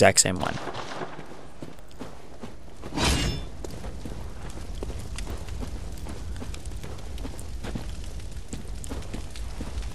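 Footsteps tread on stone and rough ground.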